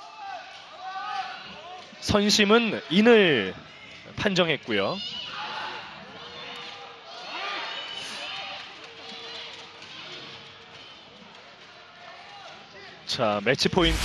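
A volleyball is struck hard with sharp slaps.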